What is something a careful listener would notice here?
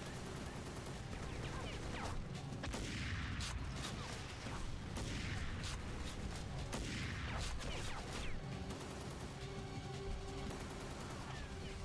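A suppressed rifle fires several shots.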